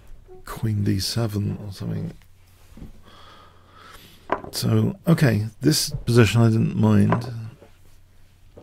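An older man speaks with animation into a close microphone.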